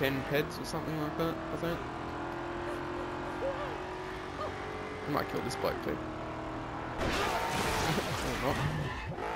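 A video game car's engine drones as the car drives.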